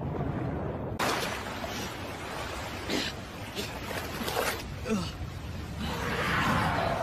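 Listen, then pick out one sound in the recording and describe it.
Rushing water churns and splashes.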